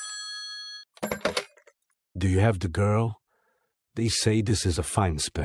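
A young woman speaks calmly into a telephone.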